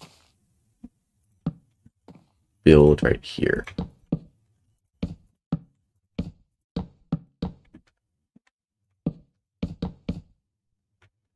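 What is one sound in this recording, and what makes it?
Wooden blocks are set down with short, soft knocks.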